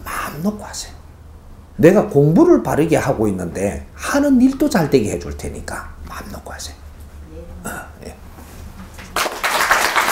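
An elderly man speaks calmly and with animation, close by.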